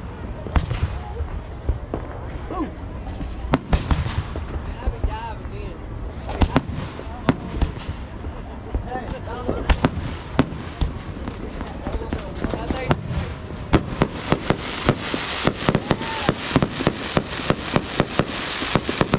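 Rockets whistle and hiss as they shoot up.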